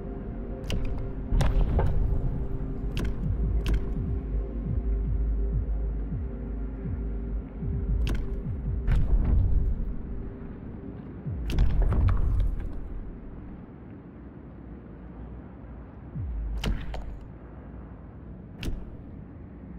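Sharp interface clicks sound now and then.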